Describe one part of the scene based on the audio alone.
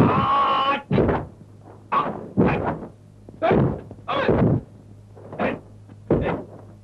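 A young man yells sharply again and again while kicking.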